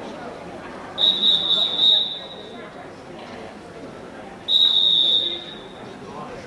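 A whistle blows in short, shrill bursts.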